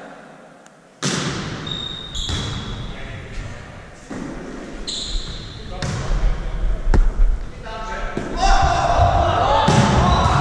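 A volleyball is hit with sharp slaps in a large echoing hall.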